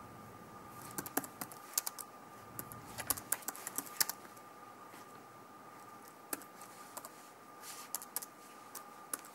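Keys on a keyboard click as someone types.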